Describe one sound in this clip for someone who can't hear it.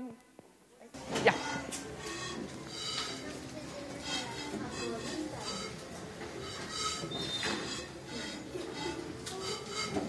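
A boy plays a pan flute with breathy, airy notes.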